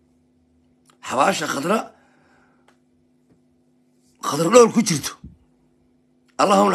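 A man speaks with animation close to the microphone, in short bursts with pauses.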